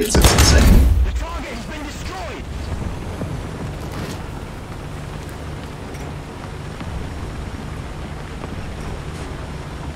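A tank engine rumbles low and steady as the tank drives.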